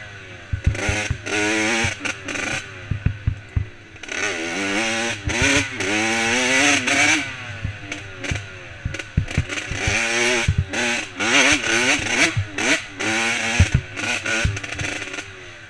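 A dirt bike engine revs up and down loudly, close by.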